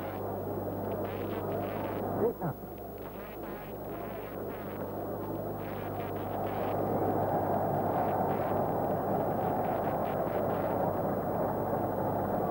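A large stadium crowd roars steadily, swelling louder partway through.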